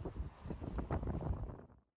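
A snowplow engine rumbles.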